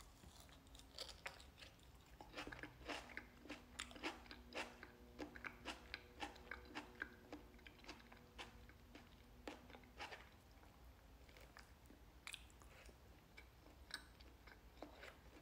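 A young man crunches and chews fresh salad.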